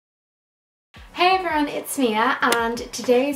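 A young woman speaks cheerfully and with animation, close to a microphone.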